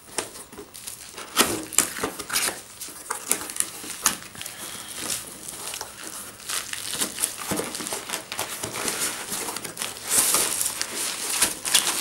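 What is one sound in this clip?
Cardboard flaps scrape and rustle as a box is opened.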